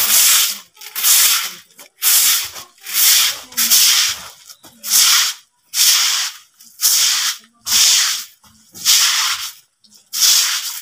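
A stiff brush scrubs a hard surface in steady, rhythmic strokes.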